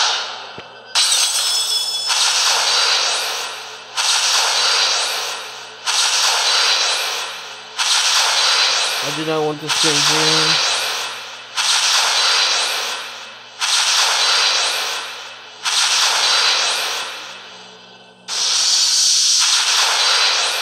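A bright shimmering whoosh sounds again and again, each burst fading away.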